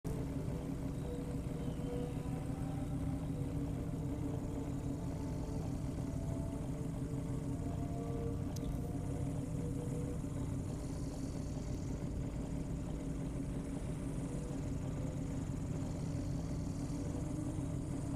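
A sports car engine idles with a deep, steady rumble.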